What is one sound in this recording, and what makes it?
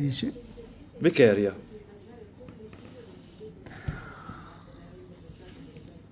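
A metal watch bracelet clinks softly as it is handled.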